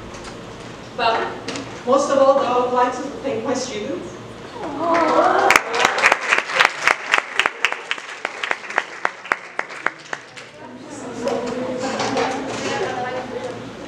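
A woman speaks into a microphone, heard through loudspeakers in an echoing hall.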